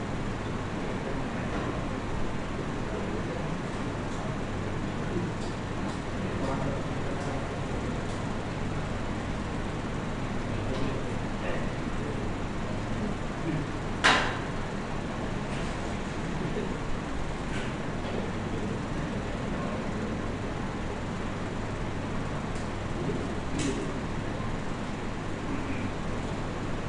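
Ceiling fans whir steadily in a large echoing hall.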